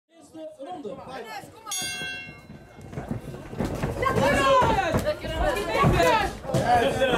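A crowd of spectators shouts and cheers in a large hall.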